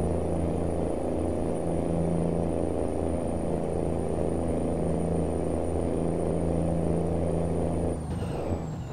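A heavy truck engine drones steadily, then eases off near the end.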